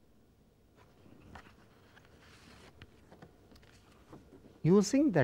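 Stiff paper rustles as it is handled.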